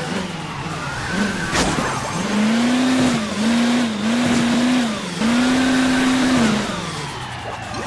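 A game vehicle's engine hums and revs up and down.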